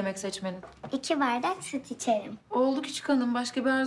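A young girl speaks playfully, close by.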